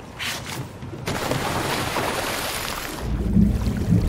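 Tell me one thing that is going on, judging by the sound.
Water splashes and churns as someone swims.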